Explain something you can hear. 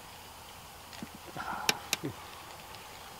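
A fishing reel clicks and whirs close by.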